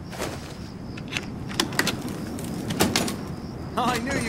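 A key clicks and turns in a door lock.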